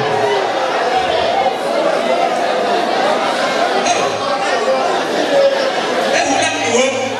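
A man speaks with animation into a microphone, heard through a loudspeaker in an echoing hall.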